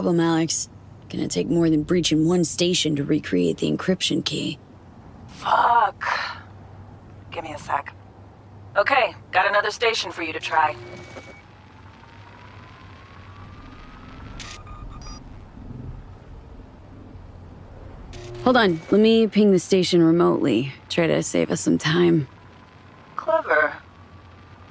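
A woman talks calmly over a call.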